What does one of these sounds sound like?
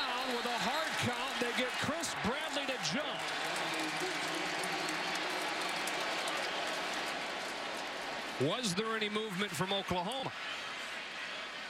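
A large crowd murmurs and cheers in a big echoing stadium.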